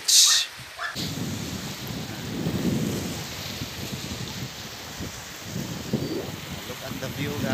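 Small waves wash gently onto a beach.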